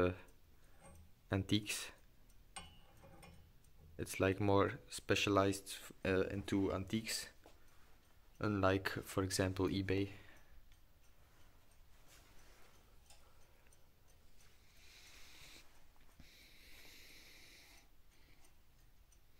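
Small brass parts clink softly as a hand handles them.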